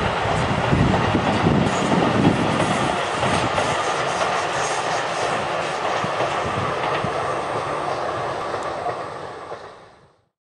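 A train rumbles past on the tracks, clattering and slowly fading into the distance.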